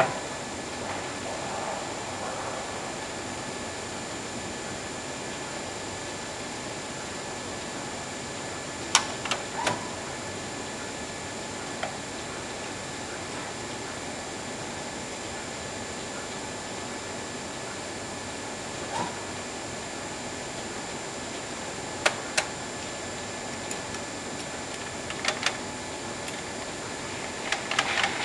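A printing press runs with a steady mechanical hum.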